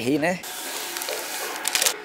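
Powder pours into a plastic jug.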